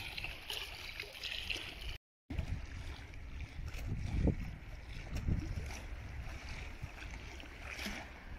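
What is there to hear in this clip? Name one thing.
Wind blows across open water outdoors.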